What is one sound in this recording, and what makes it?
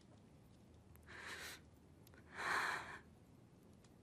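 A young woman sobs and breathes shakily, close by.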